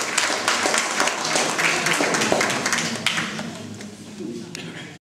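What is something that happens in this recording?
A seated crowd murmurs and shuffles in a small room.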